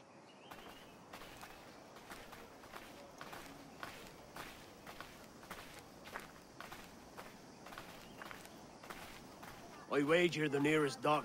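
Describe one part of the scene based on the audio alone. Footsteps tread steadily on a dirt street.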